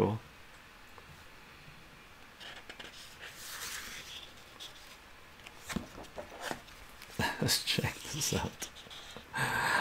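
Paper pages rustle and flip as a comic book is handled.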